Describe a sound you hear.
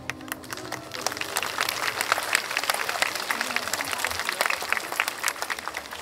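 A large outdoor crowd claps and applauds.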